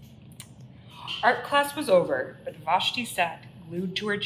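A young woman reads aloud expressively, close by.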